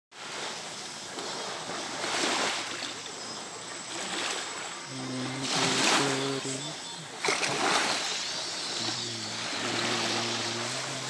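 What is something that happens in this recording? Small waves wash gently onto the shore in repeated surges.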